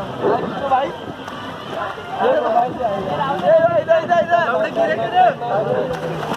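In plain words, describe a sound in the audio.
Water splashes and sloshes around floating tubes.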